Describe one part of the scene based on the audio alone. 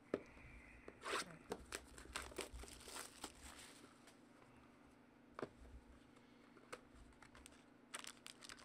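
Plastic wrapping crinkles as a box is unwrapped.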